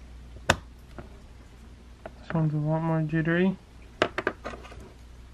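A plastic container clicks and rattles as hands handle it.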